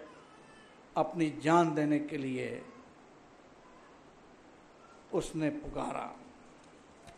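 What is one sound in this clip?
A middle-aged man speaks calmly into a microphone, reading out in short phrases.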